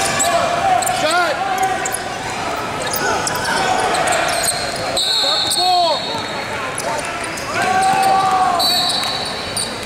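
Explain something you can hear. Basketball sneakers squeak on a hardwood court in a large echoing gym.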